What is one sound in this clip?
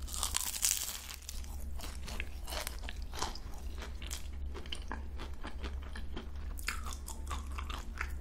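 A young woman chews and smacks her lips loudly close to the microphone.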